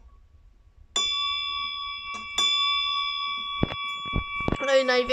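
A brass bell rings with a clear tone and slowly rings on.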